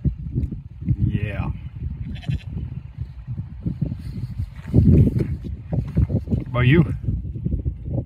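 A sheep bleats nearby.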